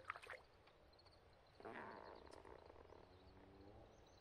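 Water splashes softly as a fish is lifted from a pond.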